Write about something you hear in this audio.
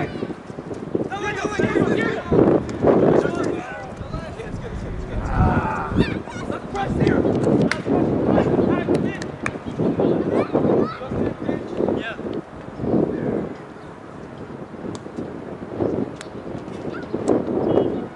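Young women shout and call out to each other outdoors, from across a field.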